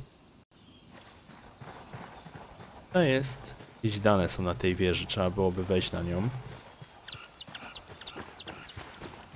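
Footsteps crunch on dirt and through grass.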